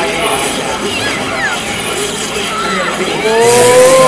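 Magic blasts burst with whooshing bangs.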